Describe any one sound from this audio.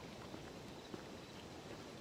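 A fire crackles nearby.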